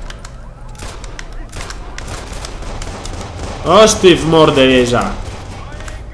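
Pistol shots crack sharply, one after another.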